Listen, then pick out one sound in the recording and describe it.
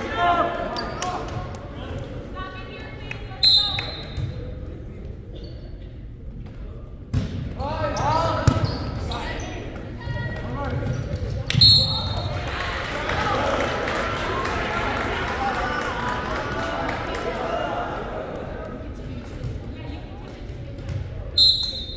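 A crowd of spectators cheers and chatters in a large echoing gym.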